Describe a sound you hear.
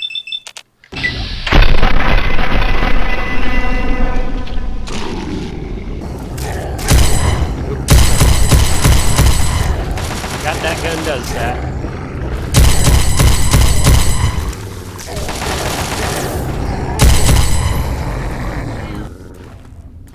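A weapon fires loud, crackling energy blasts in bursts.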